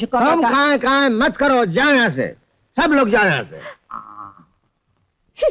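An elderly man speaks loudly and with agitation.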